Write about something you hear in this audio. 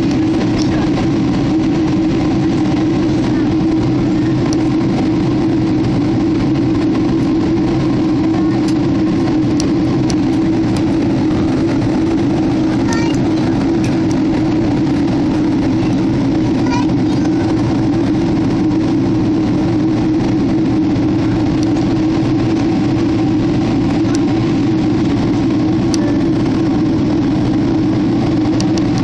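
A jet engine roars steadily inside an airplane cabin.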